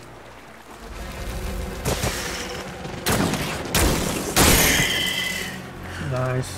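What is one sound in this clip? A gun fires bursts of shots.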